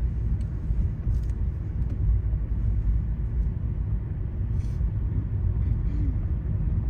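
A car engine hums steadily inside the car.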